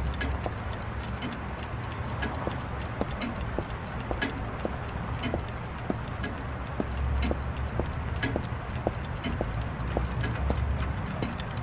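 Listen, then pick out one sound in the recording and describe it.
Footsteps tread slowly.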